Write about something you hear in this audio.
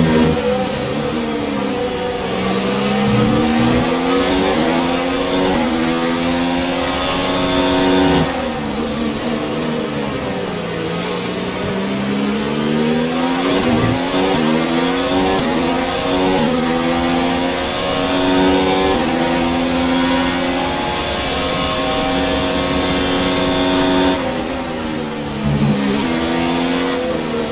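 A racing car engine roars, rising in pitch as it speeds up and dropping as it slows for corners.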